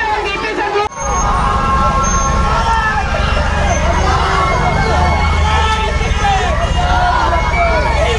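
A large crowd murmurs and cheers while marching.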